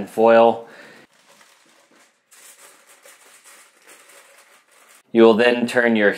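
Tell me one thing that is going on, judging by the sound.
Aluminium foil crinkles and rustles as hands fold it.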